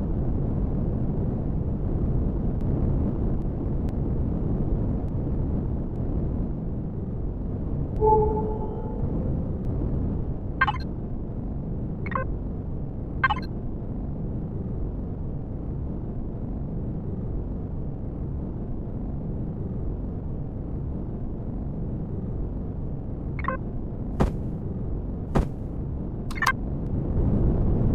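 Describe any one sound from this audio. A deep engine hum rumbles steadily.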